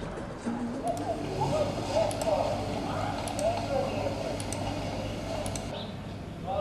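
Fingers tap on a computer keyboard.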